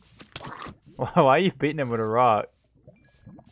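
A man speaks loudly and with animation into a microphone, close up.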